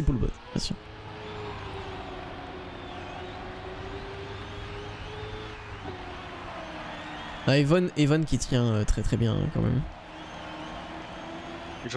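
A racing car engine hums steadily and shifts in pitch.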